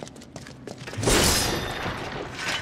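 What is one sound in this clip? A sword strikes and smashes crates with a loud crash.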